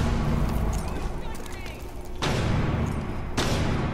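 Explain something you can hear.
A stun grenade is thrown with a soft whoosh.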